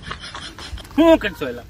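A young man speaks loudly up close.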